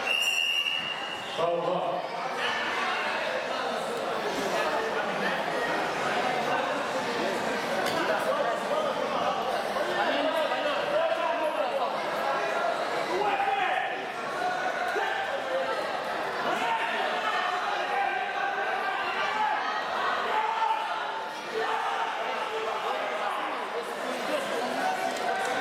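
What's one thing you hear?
Many voices chatter in a large echoing hall.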